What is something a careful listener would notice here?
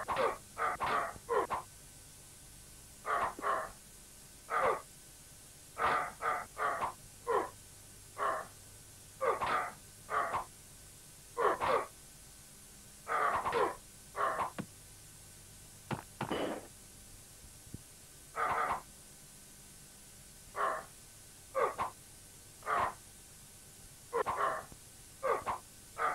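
Swords clash and ring in short bursts.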